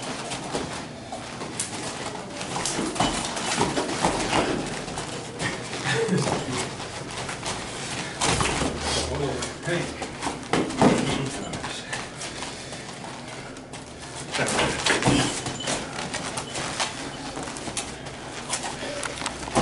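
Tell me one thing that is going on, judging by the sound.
Feet shuffle and thud on a padded floor.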